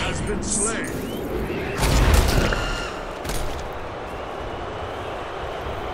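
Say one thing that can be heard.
Video game sound effects whoosh and crackle as a character moves and casts magic.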